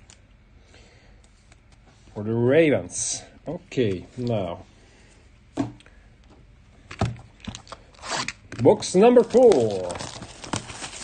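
Plastic wrap crinkles and tears.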